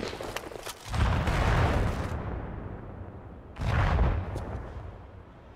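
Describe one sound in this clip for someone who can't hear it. A sniper rifle fires heavy booming shots.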